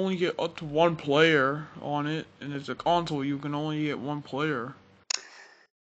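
A man speaks in a deep, cartoonish voice.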